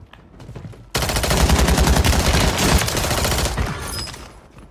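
Automatic gunfire rattles rapidly at close range.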